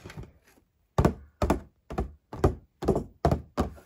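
Fingernails tap on a plastic box.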